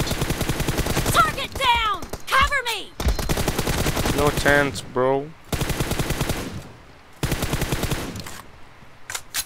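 A rifle fires in rapid, repeated bursts.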